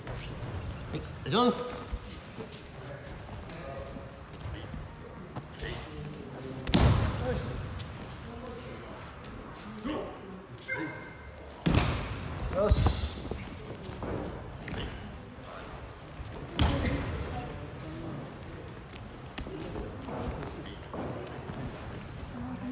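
Bodies thud onto a padded mat as people are thrown.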